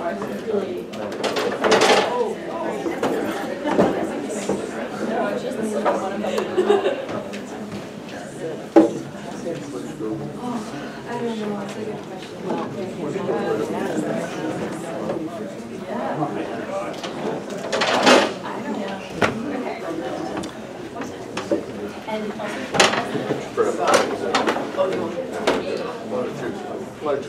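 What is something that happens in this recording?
A small crowd murmurs and chatters.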